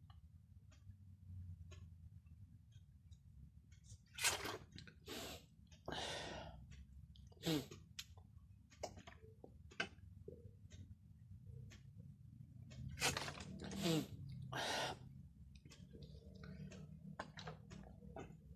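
A man gulps down water from a plastic bottle.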